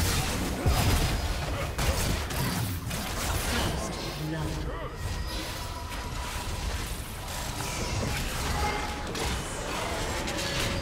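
Sword strikes clang in a game fight.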